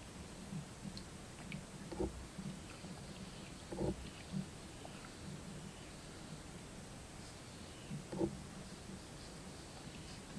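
A man gulps a drink from a coconut shell.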